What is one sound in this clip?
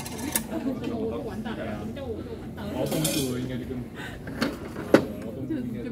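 A plastic cup knocks into a metal holder.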